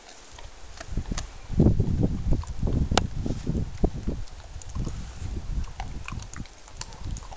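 A dog chews and crunches on food close by.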